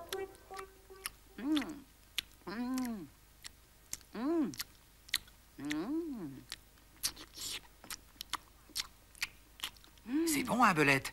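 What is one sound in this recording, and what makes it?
A ferret laps and chews food from a bowl with quick wet clicks.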